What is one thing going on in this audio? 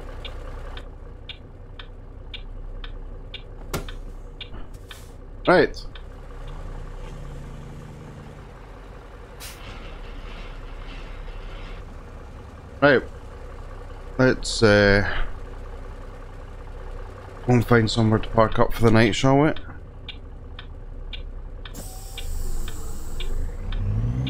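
A turn signal ticks evenly inside a truck cab.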